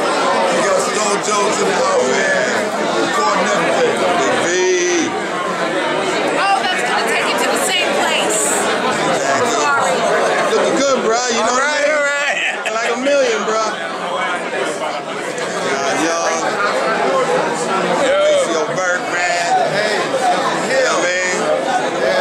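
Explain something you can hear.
A crowd of men and women chatters all around, close by.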